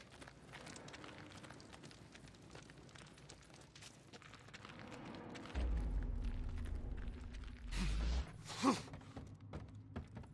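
Footsteps crunch on a gritty floor.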